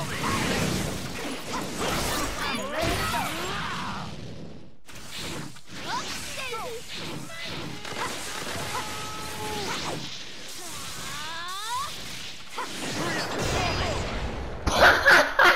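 Video game fighting sounds whoosh and crash with bursts of energy blasts.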